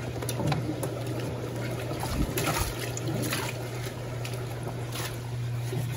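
Wet clothes splash as hands stir them in a drum.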